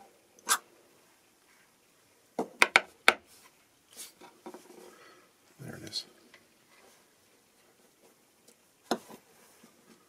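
Small metal parts click and tap on a wooden surface.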